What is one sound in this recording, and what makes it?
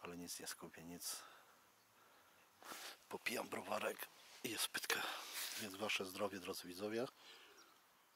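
A man talks calmly close to the microphone.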